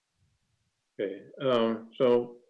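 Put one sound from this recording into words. An elderly man speaks over an online call.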